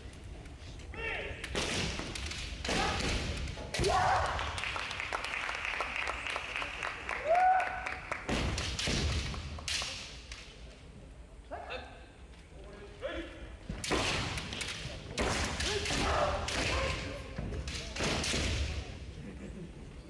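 Young men shout loudly and sharply in a large echoing hall.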